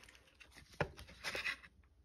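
A cleaver cuts through a block of soap on cardboard.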